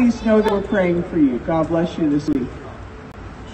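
An elderly woman speaks into a microphone over a loudspeaker.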